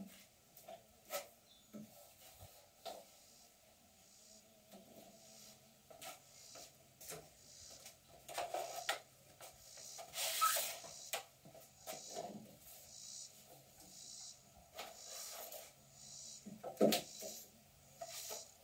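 Knocks and taps sound on wood.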